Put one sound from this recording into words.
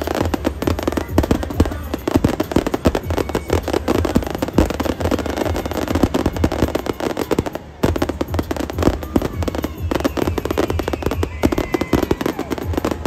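Fireworks crackle and pop rapidly, close by.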